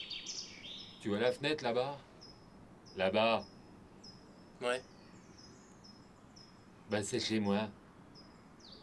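A man speaks calmly at close range.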